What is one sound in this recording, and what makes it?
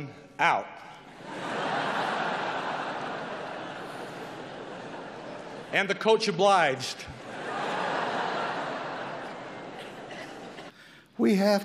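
A large audience laughs loudly.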